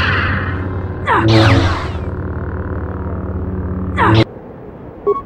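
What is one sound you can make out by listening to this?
A lightsaber swooshes sharply through the air.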